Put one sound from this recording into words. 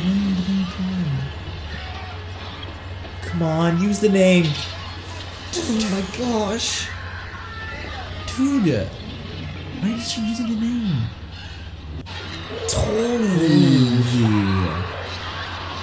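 Another young man cries out in dismay close by.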